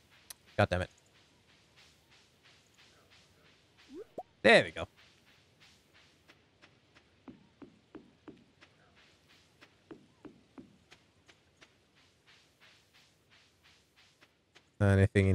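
Quick, light footsteps patter steadily on dirt in a game.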